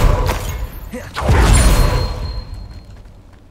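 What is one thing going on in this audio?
A magic spell bursts with a crackling whoosh.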